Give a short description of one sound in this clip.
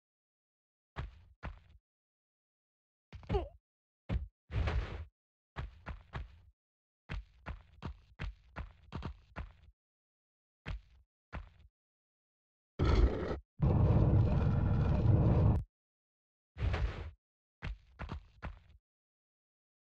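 Footsteps patter quickly on a hard stone floor.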